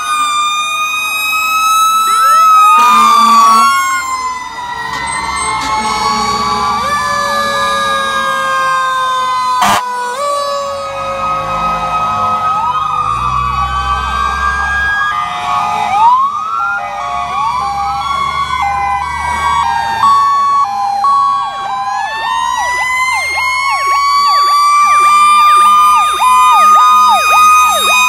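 Air horns blare in short loud blasts.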